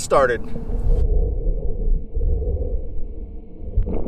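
Water swishes and burbles, heard muffled from underwater.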